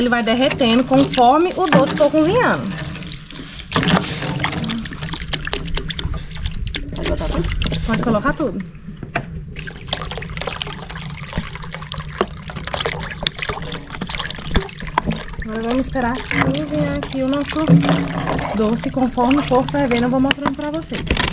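Liquid pours and splashes into a pan.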